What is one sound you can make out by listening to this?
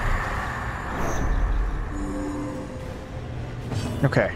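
A magical spell shimmers with a rushing sound.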